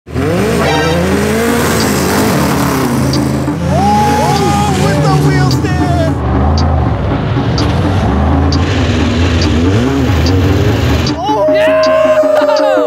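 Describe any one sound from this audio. Off-road engines roar and rev loudly, rising and falling in pitch.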